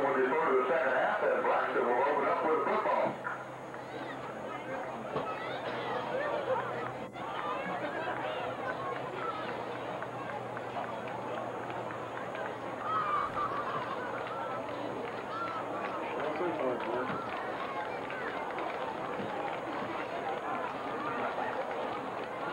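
A crowd murmurs and chatters outdoors at a distance.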